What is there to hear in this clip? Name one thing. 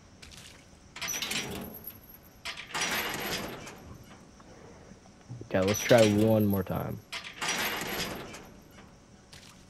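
A heavy iron gate rattles and creaks as it is shaken.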